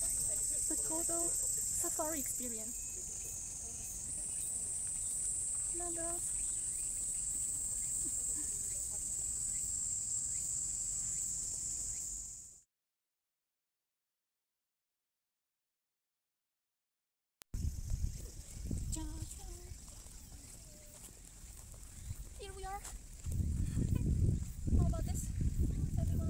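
A woman speaks softly and calmly close to the microphone.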